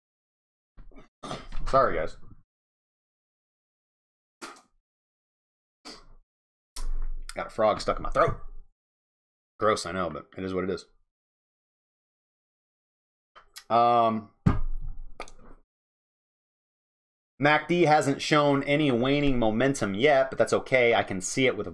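A man talks calmly and closely into a microphone, in short bursts with pauses.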